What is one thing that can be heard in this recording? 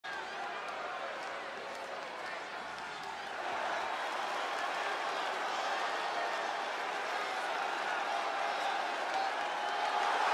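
A large crowd cheers and roars in a huge echoing arena, growing louder.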